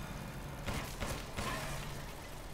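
Pistol shots go off in quick succession.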